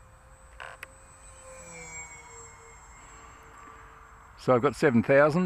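A small model plane engine whines overhead and fades as the plane flies away.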